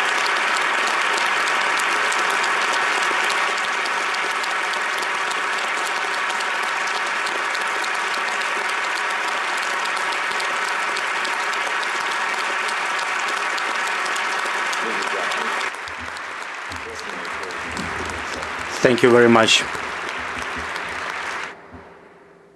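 A large crowd applauds loudly and steadily in a large hall.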